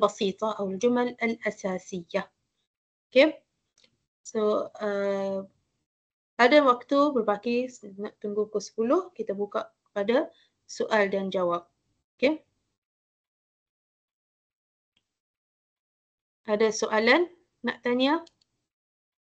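A young woman speaks calmly through an online call, in short bursts with pauses.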